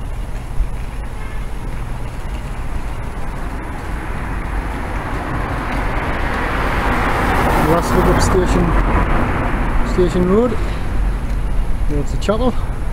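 A vehicle engine rumbles low and steady while driving along a street.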